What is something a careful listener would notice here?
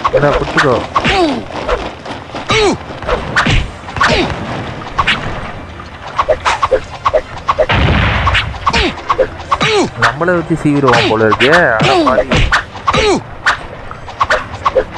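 Swords clash and clang again and again in quick bursts.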